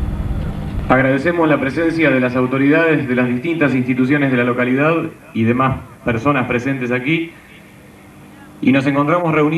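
A group of young people sings together outdoors.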